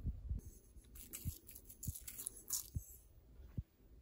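Sesame seeds patter lightly onto food.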